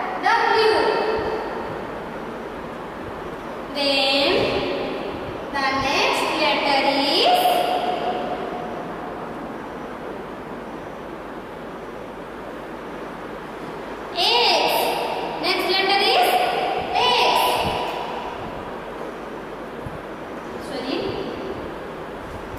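A woman speaks clearly and in a sing-song way, as if teaching young children.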